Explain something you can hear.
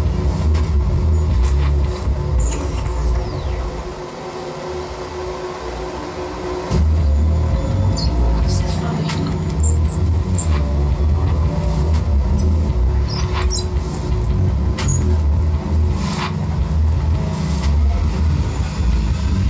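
Sharp electronic clicks and glitches crackle over the music.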